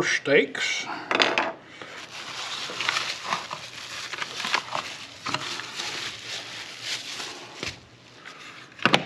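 Bubble wrap rustles and crinkles as it is unwrapped.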